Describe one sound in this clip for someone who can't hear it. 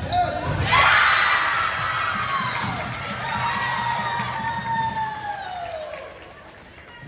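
Young women cheer and shout loudly in a large echoing gym.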